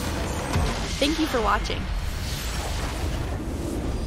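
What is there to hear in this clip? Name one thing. A structure explodes with a deep rumbling crash.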